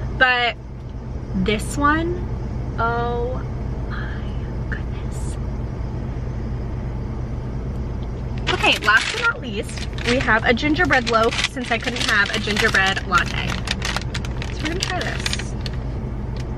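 A young woman talks brightly and close to a microphone.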